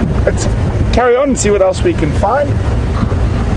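A man speaks loudly over the engine noise.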